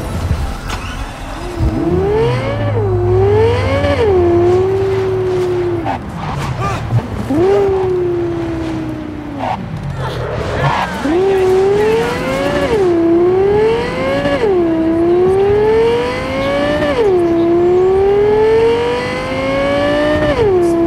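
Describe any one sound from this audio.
A sports car engine roars, revving up and shifting gears again and again.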